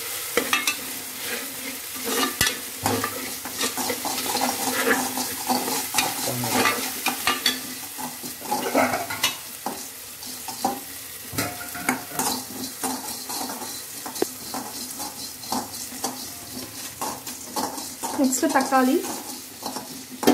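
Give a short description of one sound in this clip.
Onions and chillies sizzle in hot oil.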